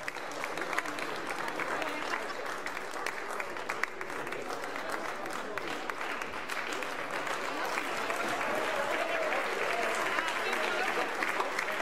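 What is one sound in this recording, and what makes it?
A choir of men and women sings together in a large echoing hall.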